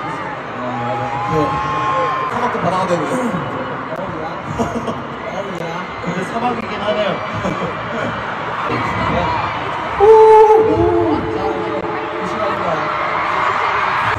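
A large crowd screams and cheers loudly in a big echoing arena.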